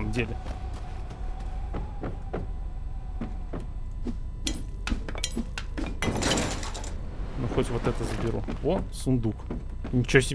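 Digging tools knock and crunch through blocks in quick, repeated hits.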